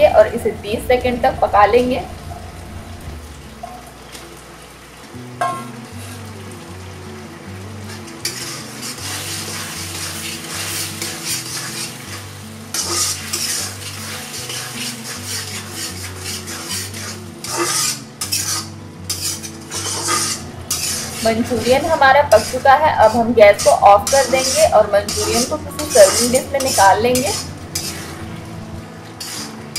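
A metal ladle scrapes against a wok.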